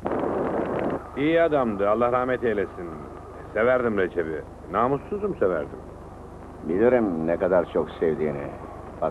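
A man speaks firmly and close by.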